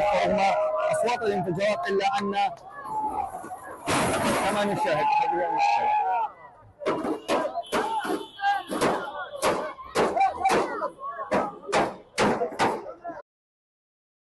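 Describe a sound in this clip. A crowd of young men shout and talk excitedly nearby.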